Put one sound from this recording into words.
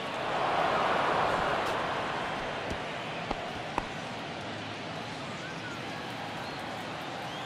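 A stadium crowd cheers and murmurs steadily.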